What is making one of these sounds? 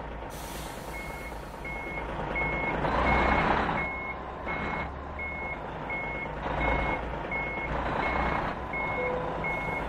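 A truck's reversing alarm beeps at a steady, even pace.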